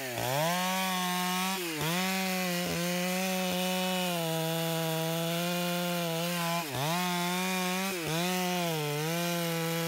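A chainsaw's engine bogs down as it bites into wood.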